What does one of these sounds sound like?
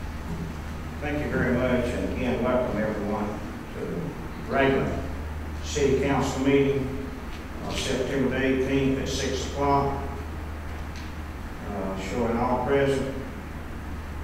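An elderly man speaks calmly through a microphone in a large room.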